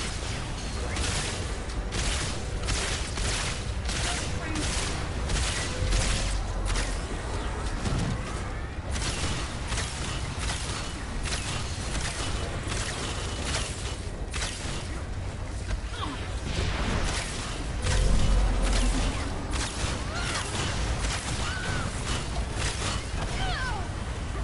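Rapid energy gunfire blasts in quick bursts.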